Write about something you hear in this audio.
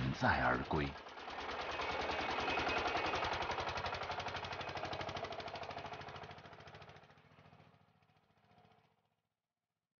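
A tractor engine chugs steadily and fades away.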